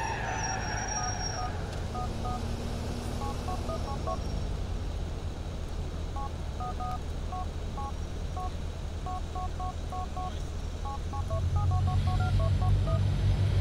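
A phone keypad beeps in quick short tones.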